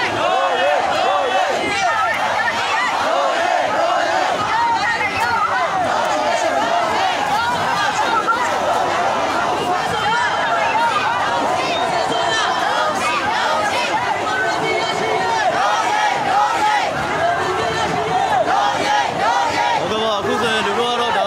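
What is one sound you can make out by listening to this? A large crowd of men and women chants and shouts together outdoors.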